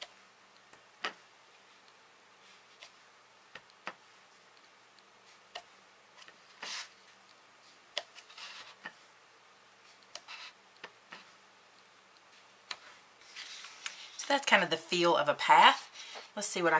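A hard plastic block taps and clicks against paper.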